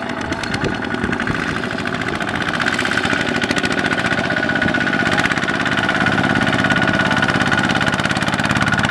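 A small diesel tractor engine chugs steadily and grows louder as it approaches.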